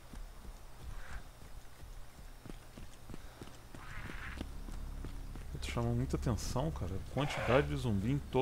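Footsteps rustle steadily through grass.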